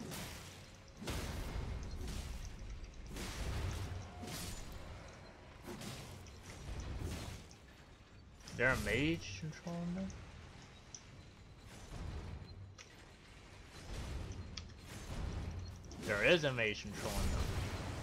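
A blade swishes through the air in heavy swings.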